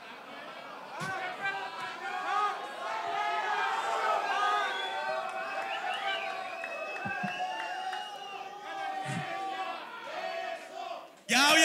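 A crowd cheers and shouts in a large hall.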